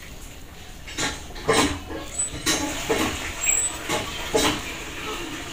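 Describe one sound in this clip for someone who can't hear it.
A metal spoon scrapes against a metal pot.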